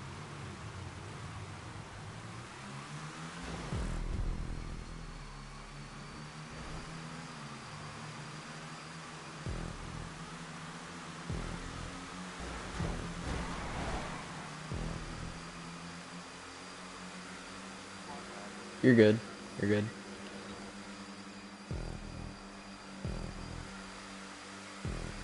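Race car engines roar steadily at high speed.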